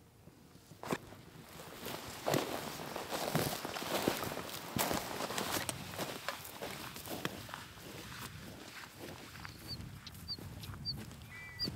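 Boots crunch on stony ground with steady footsteps.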